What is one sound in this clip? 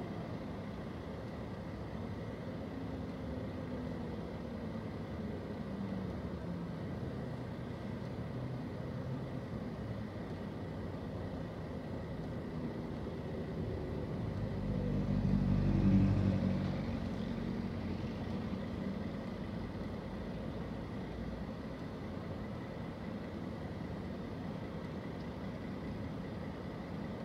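A bus engine idles nearby with a steady low rumble.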